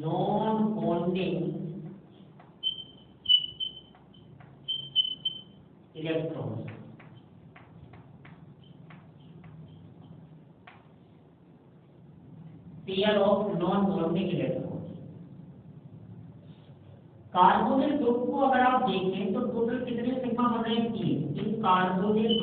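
A man speaks calmly in a lecture voice.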